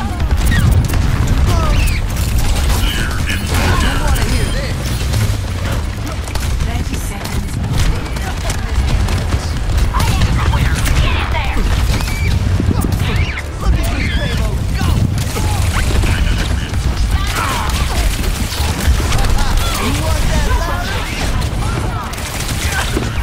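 Weapons fire and explosions boom again and again in a fast battle.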